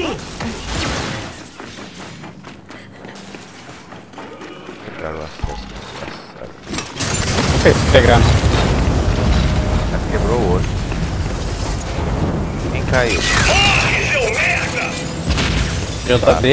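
Heavy armoured footsteps clank on a metal floor.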